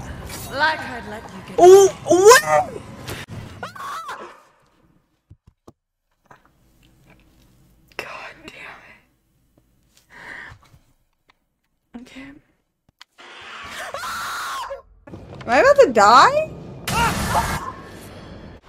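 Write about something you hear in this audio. A young woman screams and shrieks close to a microphone.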